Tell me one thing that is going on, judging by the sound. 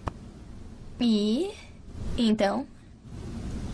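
A young woman speaks in short phrases close by.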